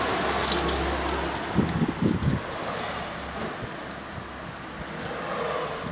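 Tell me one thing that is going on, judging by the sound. A plastic lid creaks and knocks as a hand moves it.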